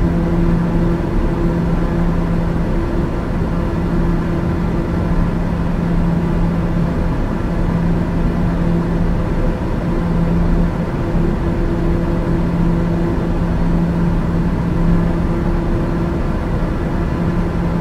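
An aircraft engine drones steadily with a low hum and rushing air.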